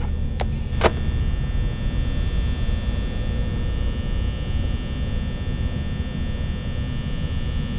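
An electric desk fan whirs steadily.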